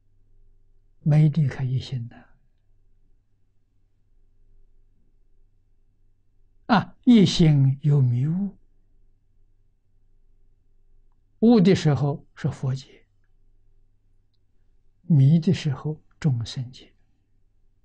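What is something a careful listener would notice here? An elderly man speaks slowly and calmly into a close microphone, in short phrases with long pauses.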